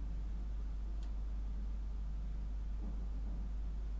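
Small metal parts of a bicycle click faintly as they are adjusted.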